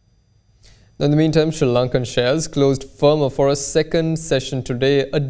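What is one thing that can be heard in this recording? A young man speaks calmly and clearly into a microphone.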